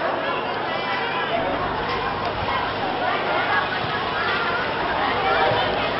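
Many children chatter and shout outdoors.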